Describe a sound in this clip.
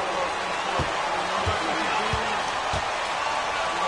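A basketball bounces on a hardwood court a few times.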